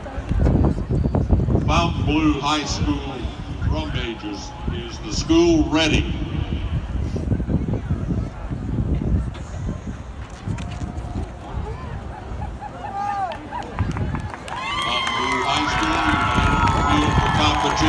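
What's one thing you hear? A marching band plays loudly in an open, echoing stadium.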